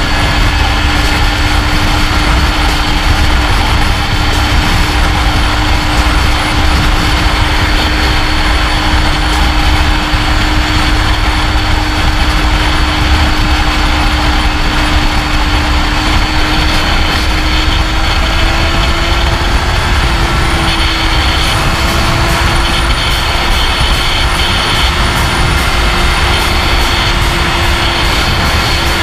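An inline-four sport bike engine hums at steady highway speed.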